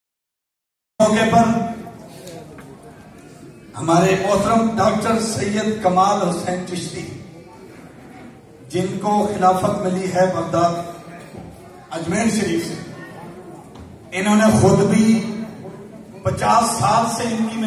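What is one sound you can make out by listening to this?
A middle-aged man speaks into a microphone over loudspeakers, reciting with feeling in a large echoing hall.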